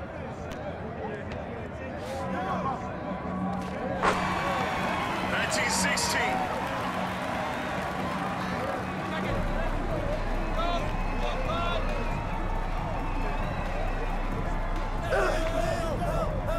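A crowd cheers and murmurs steadily.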